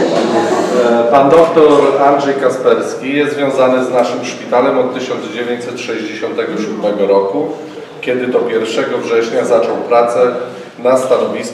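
A man speaks calmly to an audience.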